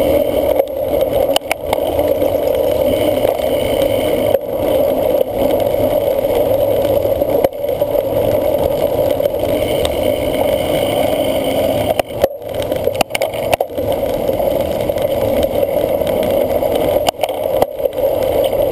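A cyclocross bike rattles and clatters over bumps.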